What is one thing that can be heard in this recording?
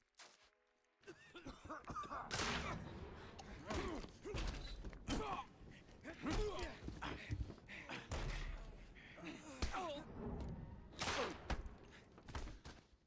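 Men grunt and shout as they brawl.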